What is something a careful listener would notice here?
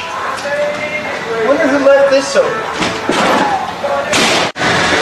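A metal door bar clunks as a door is pushed open.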